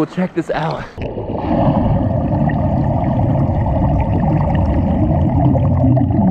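Bubbles rush and gurgle loudly underwater.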